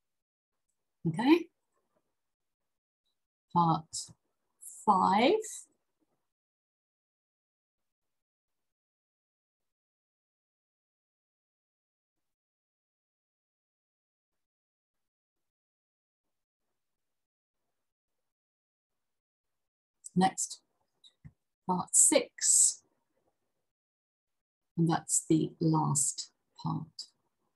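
A woman reads aloud calmly through a microphone, in short bursts with long pauses.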